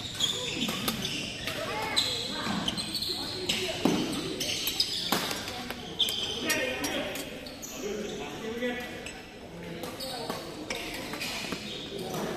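Voices of people chatter in a large echoing hall.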